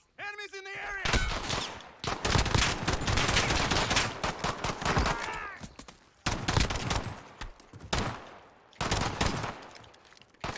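Rapid gunshots crack loudly and close.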